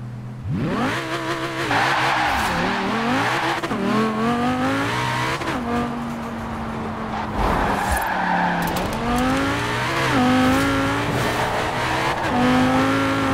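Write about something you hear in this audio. A racing car engine revs hard, rising in pitch and dropping with each gear change.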